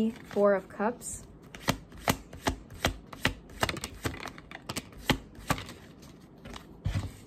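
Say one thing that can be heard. Playing cards riffle and click as they are shuffled.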